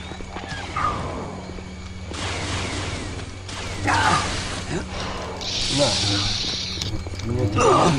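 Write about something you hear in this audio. Energy swords hum and clash.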